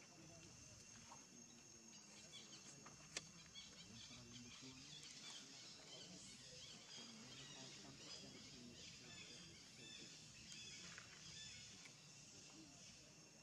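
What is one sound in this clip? A baby monkey suckles softly at close range.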